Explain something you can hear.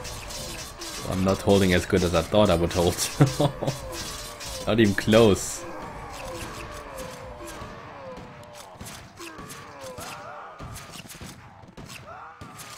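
Swords and blows clash in a busy fight.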